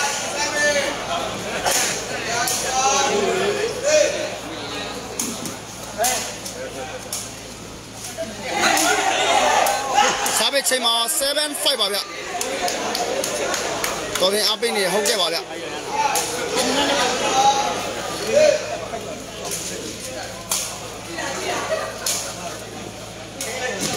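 A large crowd chatters and cheers.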